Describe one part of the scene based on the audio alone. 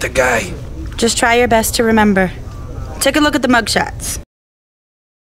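A young woman speaks calmly and close.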